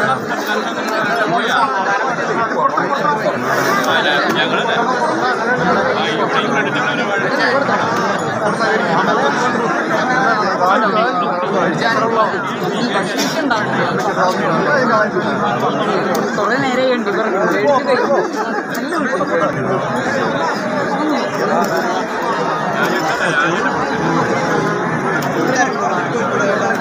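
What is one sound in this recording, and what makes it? A large crowd of men and women chatters loudly all around, outdoors.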